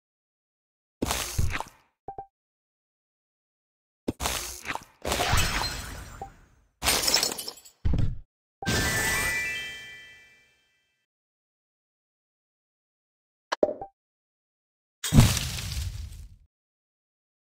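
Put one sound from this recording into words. Bursts of game sound effects ring out as blocks shatter.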